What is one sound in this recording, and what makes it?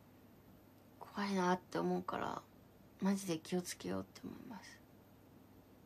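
A young woman speaks softly and briefly, close to a microphone.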